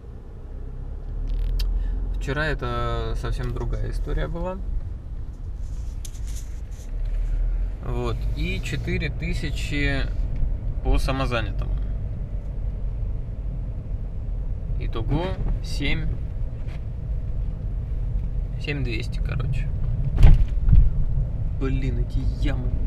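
A car's engine and tyres rumble low and steadily.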